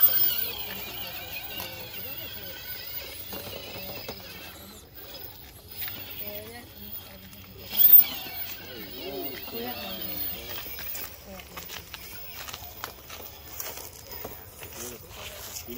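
The tyres of a radio-controlled rock crawler scrape and knock on rocks.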